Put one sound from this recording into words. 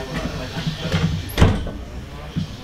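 A train carriage door thuds as it opens.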